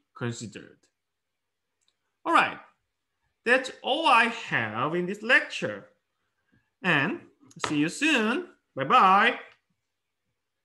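A man speaks calmly through an online call, pausing between phrases.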